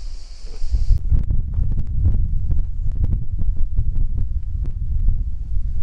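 Footsteps crunch on loose stones.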